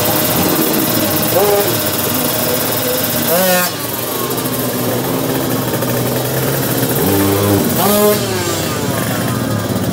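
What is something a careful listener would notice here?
Several motorcycle engines idle and rumble loudly nearby.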